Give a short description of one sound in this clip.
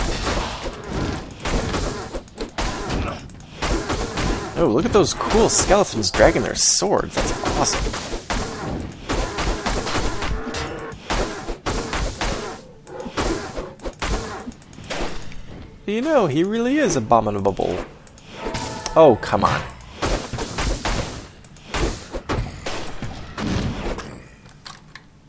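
Weapons clash and strike in rapid blows during a fight.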